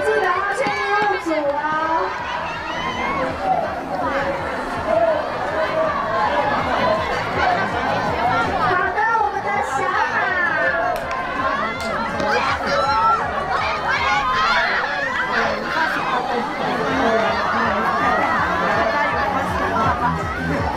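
A crowd of children chatters and shouts outdoors.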